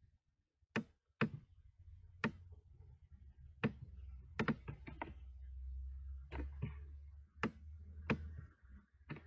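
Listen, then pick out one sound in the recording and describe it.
A mouse clicks sharply now and then.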